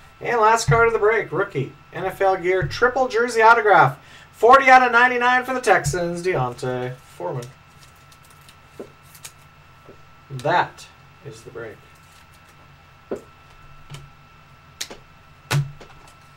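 Cardboard cards rustle and tap softly as hands handle them.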